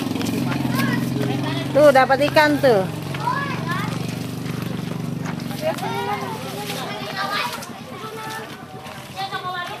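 Water splashes as a boy wades through a pond.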